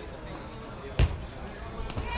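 A bat cracks sharply against a baseball.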